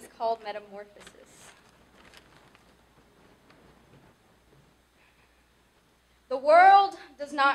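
A young woman speaks expressively into a microphone, with long pauses.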